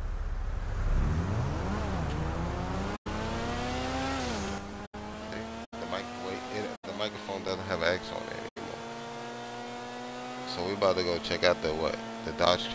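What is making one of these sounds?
A sports car engine revs and roars, shifting up through the gears.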